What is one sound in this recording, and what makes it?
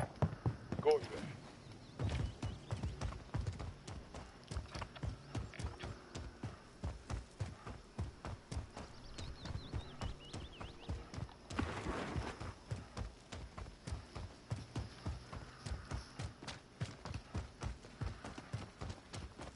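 A man talks into a headset microphone, close and with animation.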